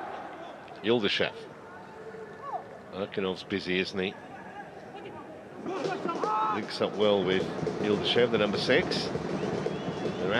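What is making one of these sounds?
Young men shout to each other across an open, echoing pitch.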